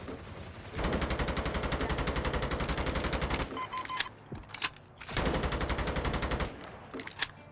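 A rapid-fire gun fires in quick bursts.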